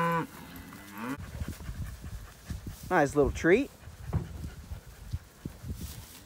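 Cattle tear and munch grass close by.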